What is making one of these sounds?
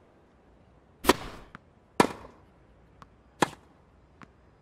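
A tennis ball is struck sharply by rackets in a rally.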